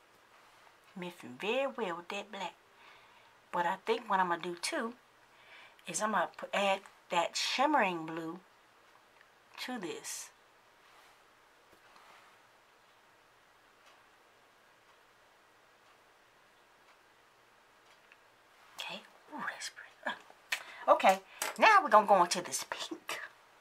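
A young woman talks calmly and close up, with long pauses.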